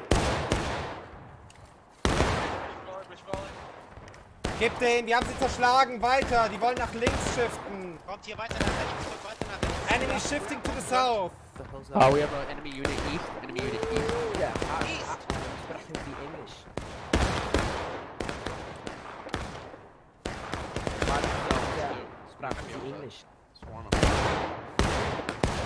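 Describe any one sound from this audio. Musket shots crack repeatedly nearby and in the distance.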